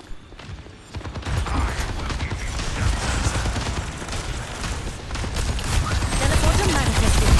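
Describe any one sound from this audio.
Rapid gunfire crackles in a video game battle.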